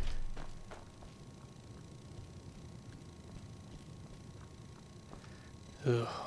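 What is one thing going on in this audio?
Footsteps tread slowly on a stone floor in an echoing hall.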